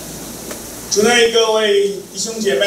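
An older man reads out calmly into a microphone over loudspeakers.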